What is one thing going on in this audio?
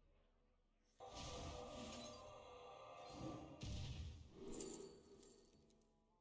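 A magic spell whooshes and bursts with a shimmering chime.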